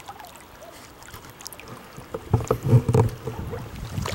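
A fish splashes at the surface of the water.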